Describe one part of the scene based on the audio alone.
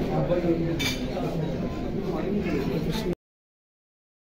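A crowd of men chatter nearby.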